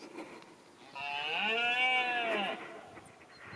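A stag bellows loudly nearby.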